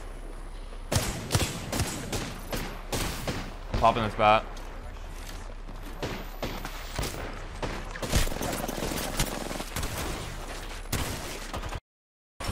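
Rifle gunshots fire in rapid bursts.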